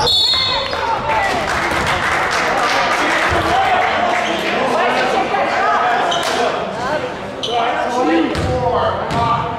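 Young players shout and call out to one another across an echoing gym.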